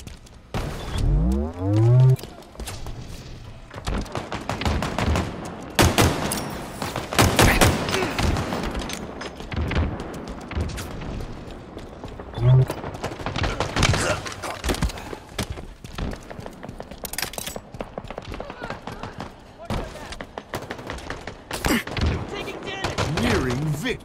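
Guns fire in sharp, rapid bursts.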